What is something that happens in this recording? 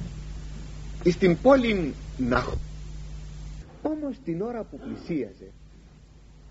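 An elderly man speaks calmly and slowly, close to a microphone, in short phrases with pauses.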